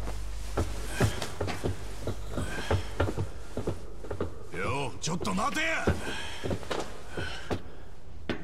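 Footsteps and clothing scuffle.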